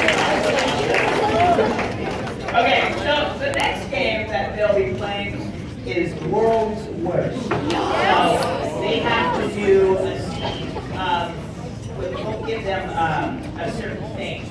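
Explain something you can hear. Young performers speak and call out loudly in an echoing hall.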